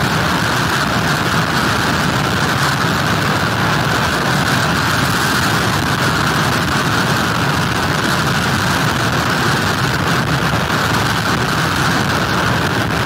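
Heavy surf crashes and roars steadily onto a beach.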